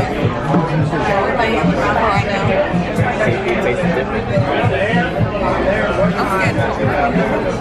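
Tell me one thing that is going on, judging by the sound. Young adults chatter and talk casually nearby in a busy room.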